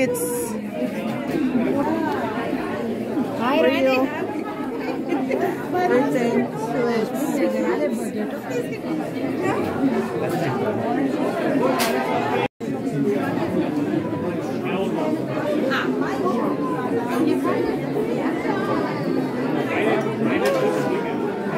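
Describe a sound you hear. A crowd of people chatter in the background.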